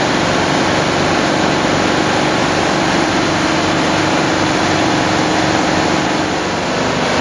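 Molten metal hisses and crackles as it pours.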